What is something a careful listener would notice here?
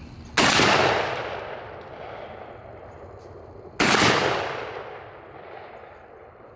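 A shotgun fires two loud shots that echo outdoors.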